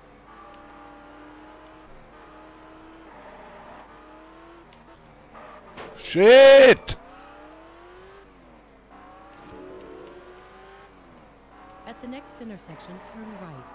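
A car engine hums and shifts pitch as the car accelerates and slows.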